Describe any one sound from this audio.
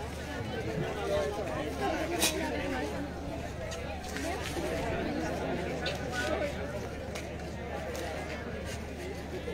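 Young women talk and call out to each other nearby.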